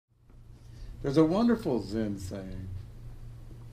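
An older man speaks calmly and slowly, close by.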